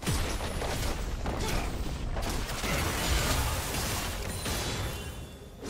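Magical blasts zap and crackle in a fast fight.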